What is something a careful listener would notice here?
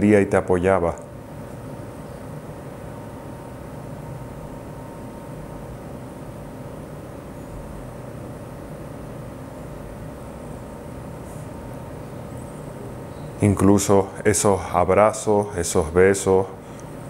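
A man speaks calmly and close to a microphone, with a long pause.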